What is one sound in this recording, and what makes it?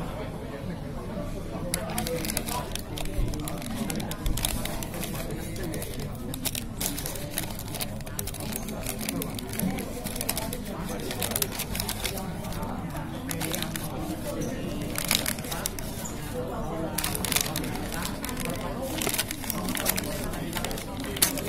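A paper bag rustles and crinkles close by.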